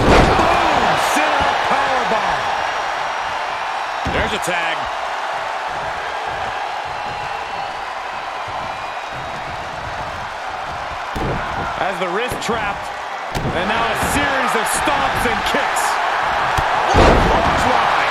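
Bodies slam onto a mat with heavy thuds.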